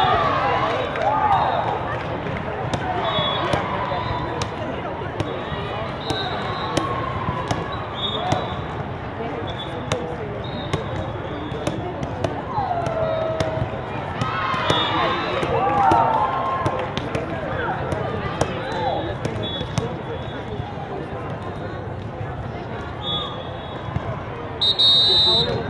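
A volleyball is struck hard by a hand.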